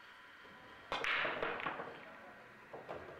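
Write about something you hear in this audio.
A cue ball smashes into a rack of billiard balls with a loud clattering crack.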